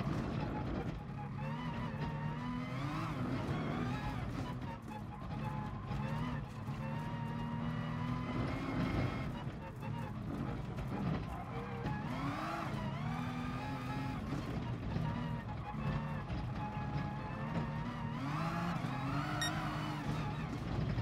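A racing car engine roars loudly, rising in pitch and dropping with each gear change.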